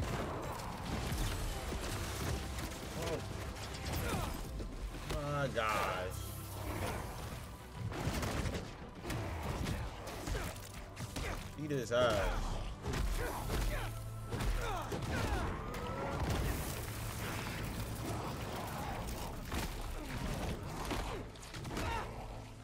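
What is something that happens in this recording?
Punches and blows thud and crash in a game fight.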